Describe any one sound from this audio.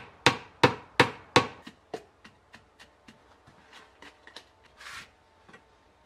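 A metal bar knocks and scrapes against hard tiles.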